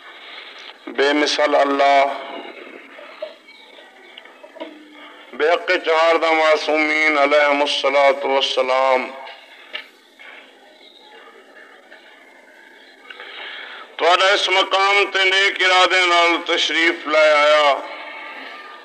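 A man recites loudly in a wavering, sung voice.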